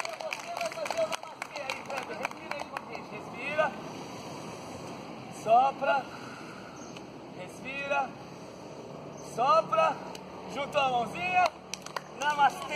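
An older man calls out exercise instructions to a group outdoors.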